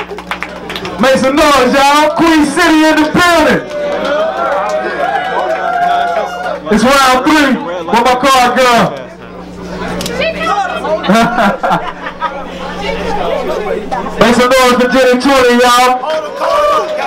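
A young man raps loudly into a microphone through loudspeakers.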